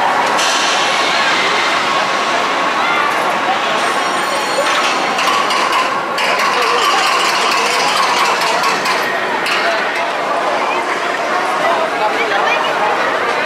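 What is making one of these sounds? A crowd of young people chatters and laughs nearby.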